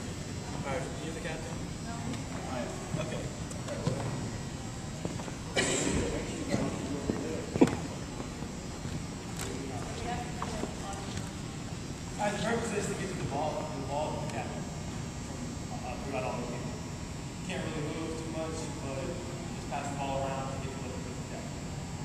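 A man talks to a group in a large echoing gym.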